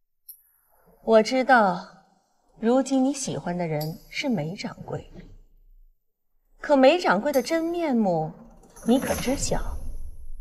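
A middle-aged woman speaks firmly, close by.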